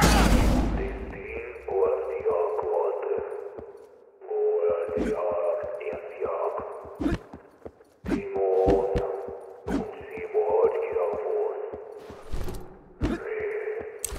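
Quick footsteps tap across a hard floor.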